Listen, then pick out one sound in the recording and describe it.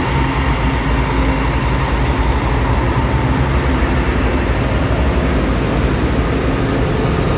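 Train wheels clatter and squeal on the rails.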